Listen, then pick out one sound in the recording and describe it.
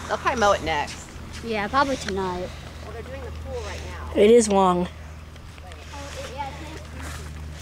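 A child talks excitedly close by.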